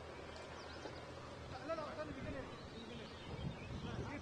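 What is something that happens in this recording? A cricket bat strikes a ball with a sharp knock, heard from a distance.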